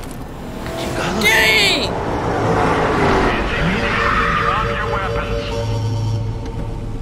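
A car engine revs and tyres screech.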